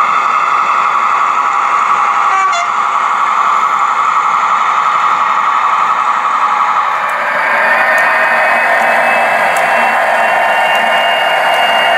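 A small electric model train motor whirs steadily.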